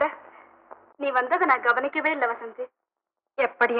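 A girl speaks up through an old film soundtrack.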